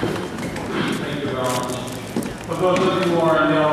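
A congregation of men and women begins to sing together.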